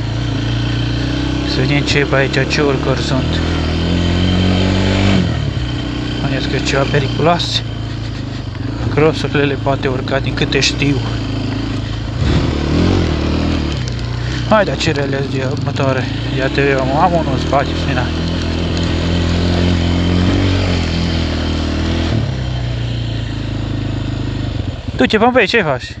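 An engine idles and rumbles steadily close by.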